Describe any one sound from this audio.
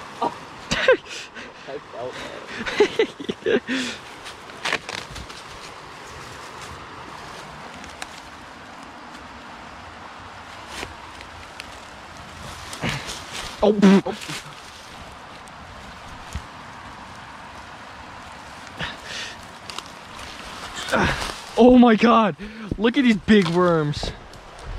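Dry leaves rustle as hands dig through the forest floor.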